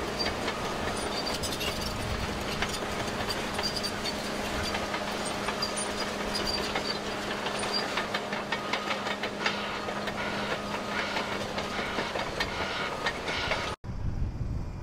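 Steel tracks clank and squeal as a bulldozer crawls over gravel.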